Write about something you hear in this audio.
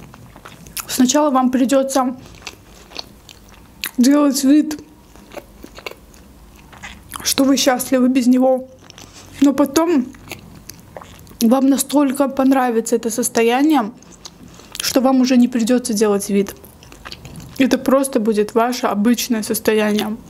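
A young woman speaks calmly and closely into a microphone.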